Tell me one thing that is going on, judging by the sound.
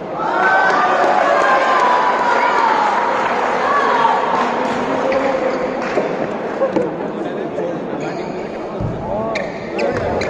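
A crowd of spectators cheers and shouts in a large indoor hall.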